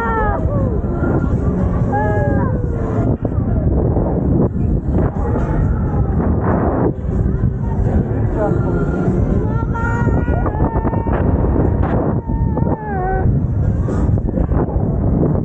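Riders scream and whoop with excitement close by.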